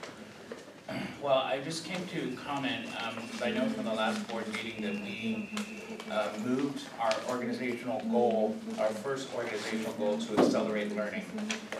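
A man speaks steadily into a microphone in a room with some echo.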